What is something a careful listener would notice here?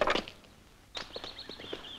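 A horse gallops over soft ground.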